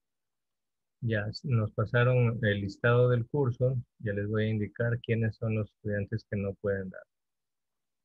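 A man speaks through an online call.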